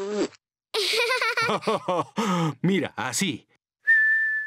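A young girl speaks with animation in a high voice.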